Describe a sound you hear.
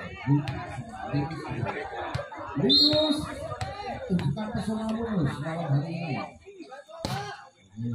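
A volleyball is hit with sharp smacks.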